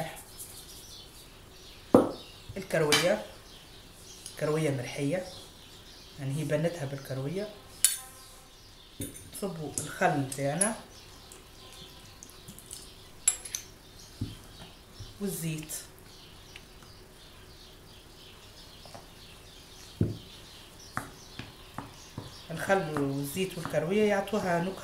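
A spoon scrapes and clinks against a glass bowl.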